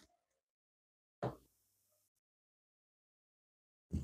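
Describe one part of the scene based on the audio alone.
A card is laid down with a soft tap.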